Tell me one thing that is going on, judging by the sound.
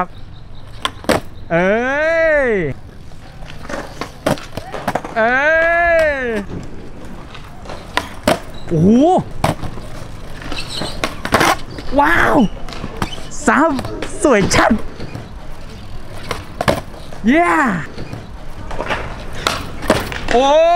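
A skateboard tail snaps and clacks on concrete.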